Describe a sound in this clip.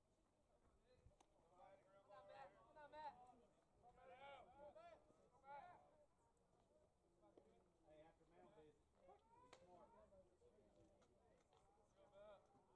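Men call out and chatter across an open field.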